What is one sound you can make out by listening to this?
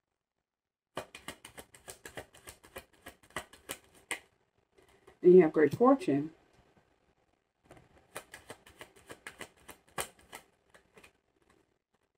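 Cards riffle and flick rapidly in quick bursts.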